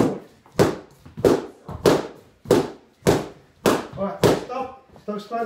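Punches thud sharply and steadily against padded mitts in a room that echoes.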